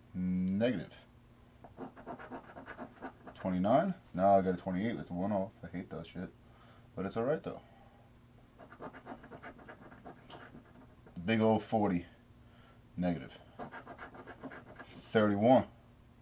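A coin scratches across a card in short, quick strokes.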